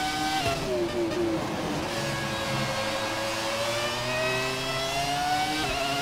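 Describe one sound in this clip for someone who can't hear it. A racing car engine whines at high revs, dropping in pitch as gears shift and then slowly climbing again.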